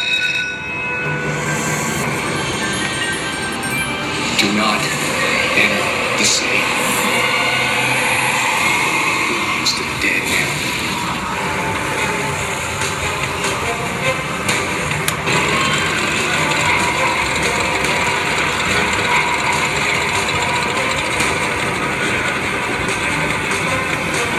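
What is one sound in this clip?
A slot machine plays loud music and sound effects.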